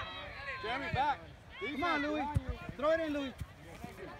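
A soccer ball is kicked with a dull thud.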